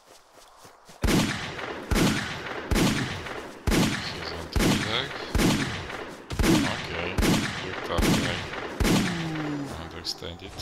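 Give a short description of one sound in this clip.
Gunshots boom again and again at a steady pace, each one ringing out.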